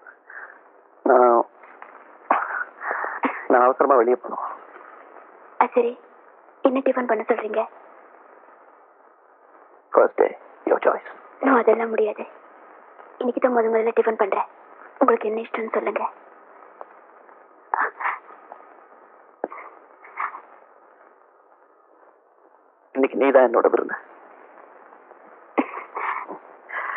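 A man speaks softly and playfully, close by.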